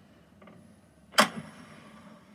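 A gramophone tone arm sets down with a clunk.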